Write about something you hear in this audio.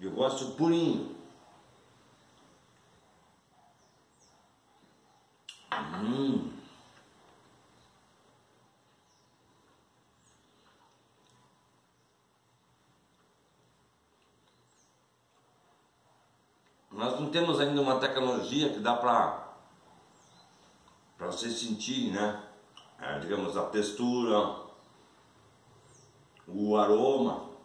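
A middle-aged man talks calmly and close by, in short bursts.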